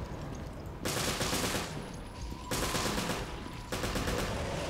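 A gun fires several shots.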